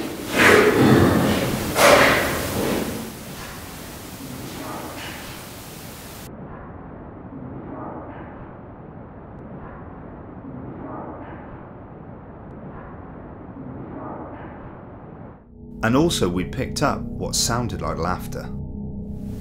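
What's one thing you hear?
A man speaks in a low voice nearby.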